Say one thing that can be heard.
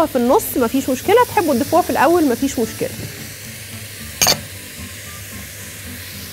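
A spatula stirs vegetables in a pot.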